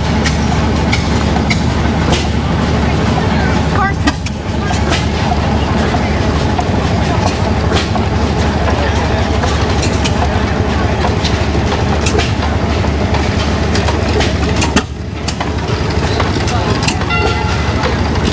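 An old stationary engine chugs with a steady low thumping.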